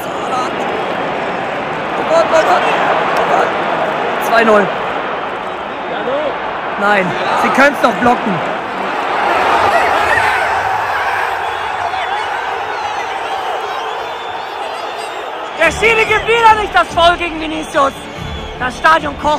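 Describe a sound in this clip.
A large stadium crowd roars loudly throughout.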